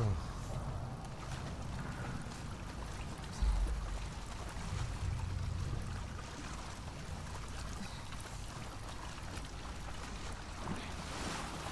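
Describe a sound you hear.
Water splashes as someone wades through knee-deep water.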